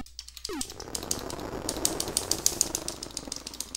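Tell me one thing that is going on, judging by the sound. Rapid electronic shots fire in quick bursts.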